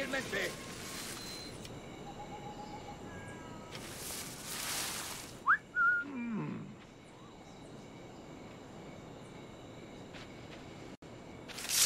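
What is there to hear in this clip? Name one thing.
Tall grass rustles as someone creeps through it.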